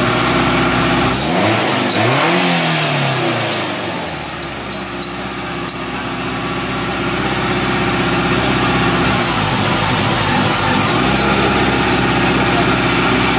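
A car engine idles steadily.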